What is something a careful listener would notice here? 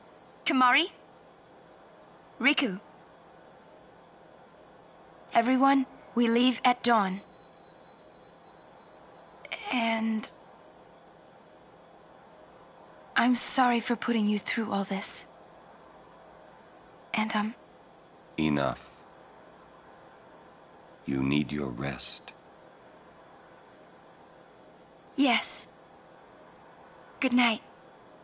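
A young woman speaks softly in short phrases, close to the microphone.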